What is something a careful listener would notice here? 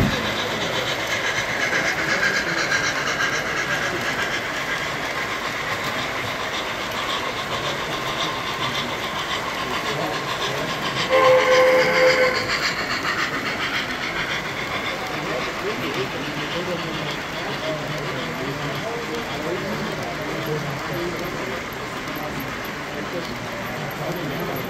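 A model train rumbles and clatters along its track.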